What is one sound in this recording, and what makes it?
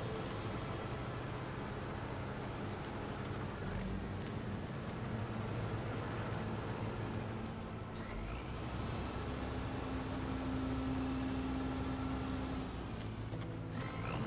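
Tyres crunch through snow.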